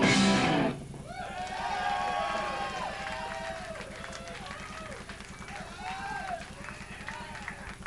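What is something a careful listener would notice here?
An electric guitar squeals with wavering feedback.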